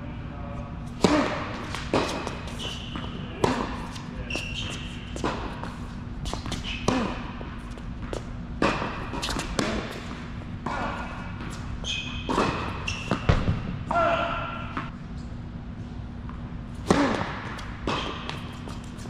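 Tennis balls are struck with rackets with sharp pops that echo around a large hall.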